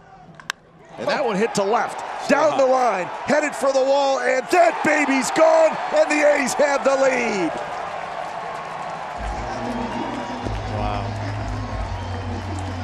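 A crowd cheers and roars.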